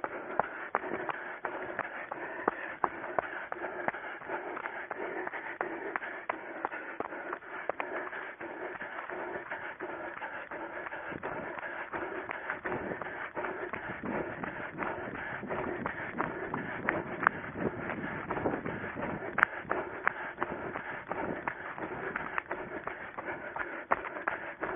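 Footsteps thud quickly on dry ground and grass as a runner jogs.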